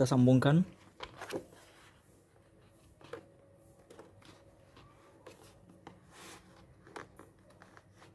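A large sheet of paper rustles as it is unrolled and pressed flat.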